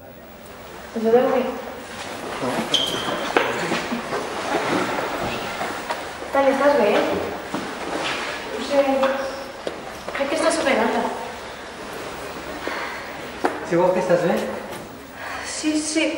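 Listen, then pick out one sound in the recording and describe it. A young woman speaks with emotion up close.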